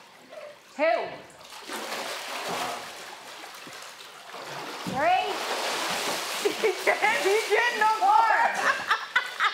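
Water splashes loudly as a swimmer thrashes in a pool.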